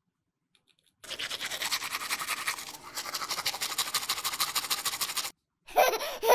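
A toothbrush scrubs quickly against hard plastic.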